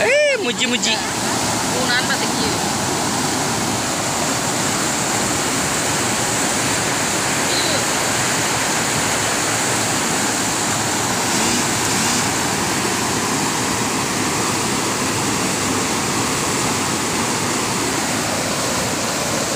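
A fast river rushes loudly over rocks close by.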